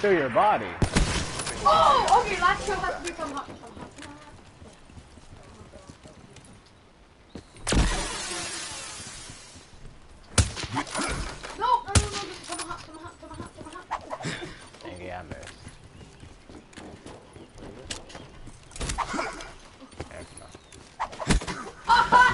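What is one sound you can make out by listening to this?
Guns fire in sharp, separate shots.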